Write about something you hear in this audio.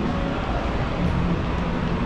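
An escalator hums and rattles steadily nearby.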